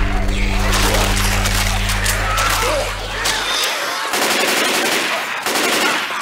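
Zombies snarl and growl close by.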